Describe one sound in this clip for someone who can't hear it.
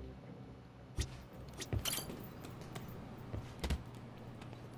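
Boxers' punches thud in a sparring ring.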